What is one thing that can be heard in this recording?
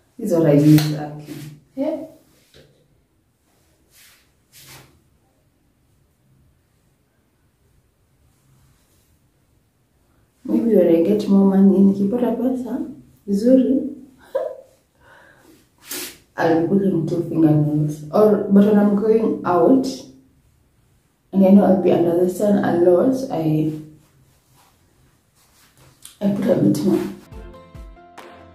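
A young woman talks calmly and close up.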